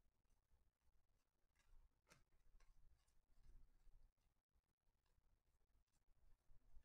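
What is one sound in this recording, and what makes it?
Cards shuffle and slide against each other in a pair of hands.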